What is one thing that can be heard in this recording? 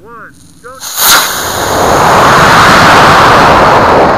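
A model rocket motor ignites with a sharp bang and roars loudly.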